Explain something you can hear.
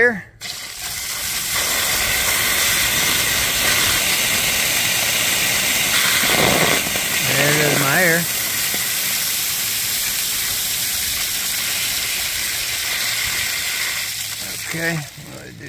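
Water gushes hard from a valve and splashes onto dirt.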